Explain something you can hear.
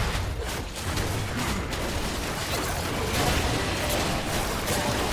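Game spell effects and magical blasts crackle and boom in a hectic battle.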